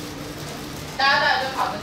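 A woman speaks loudly to a room, heard from a distance.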